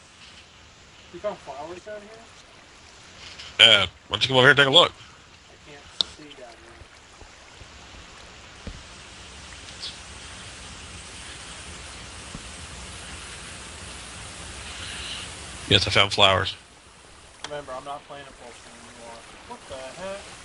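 Water flows and splashes steadily nearby.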